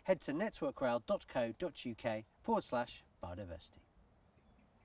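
A middle-aged man speaks calmly to the listener, close by, outdoors.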